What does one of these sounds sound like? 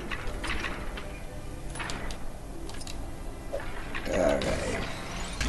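Game sound effects chime and clink as coins are collected.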